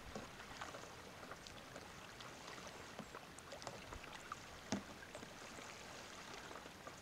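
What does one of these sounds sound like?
Water laps gently against a kayak's hull.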